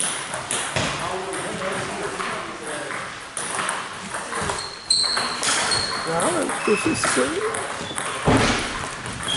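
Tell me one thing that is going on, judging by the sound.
A table tennis ball clicks on a table and bats in a large echoing hall.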